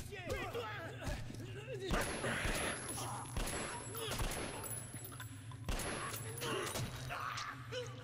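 Men grunt and thud as they fight at close quarters.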